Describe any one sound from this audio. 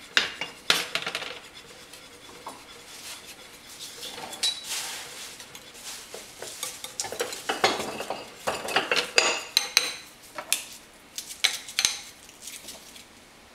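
A whisk clinks and scrapes against a bowl.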